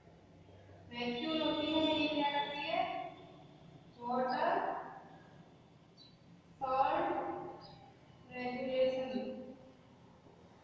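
A woman speaks calmly in short phrases.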